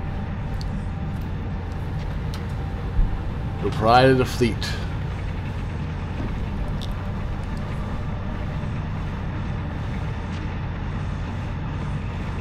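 A spacecraft engine hums low and steadily.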